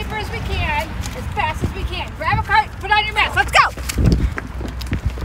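Young women talk and laugh excitedly close by.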